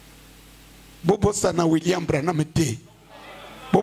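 A middle-aged man speaks with animation into a microphone, heard through loudspeakers.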